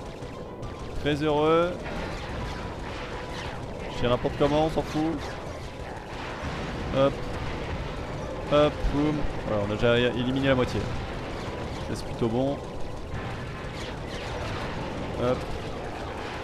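Laser shots fire in quick bursts.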